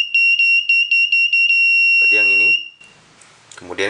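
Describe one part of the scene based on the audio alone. An electronic tester beeps in a rapid series of high tones, then holds one steady tone.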